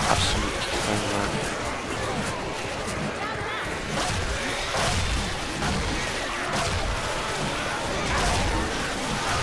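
Zombies snarl and growl close by.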